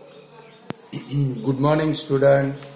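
A middle-aged man speaks clearly and close into a clip-on microphone.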